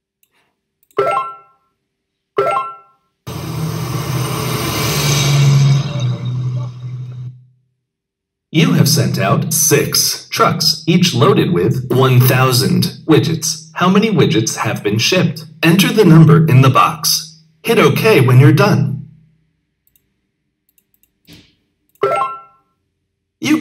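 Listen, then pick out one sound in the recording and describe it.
A short bright chime sounds as a box is added.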